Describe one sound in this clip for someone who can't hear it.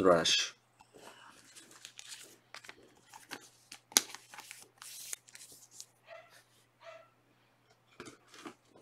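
A plastic card sleeve rustles and crinkles in someone's hands.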